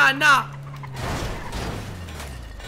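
A car crashes with a thud.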